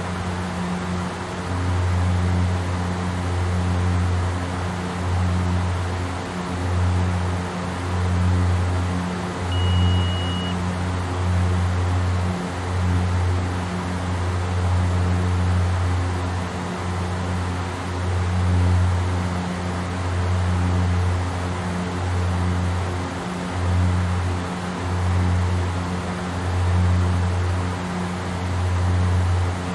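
Aircraft engines drone steadily with a low, pulsing hum, as heard from inside a cockpit.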